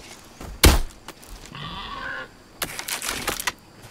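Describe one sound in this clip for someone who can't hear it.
A crossbow fires with a sharp snap.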